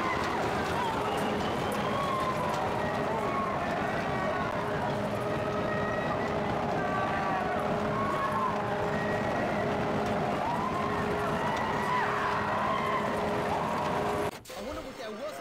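A fairground ride whirs as it spins.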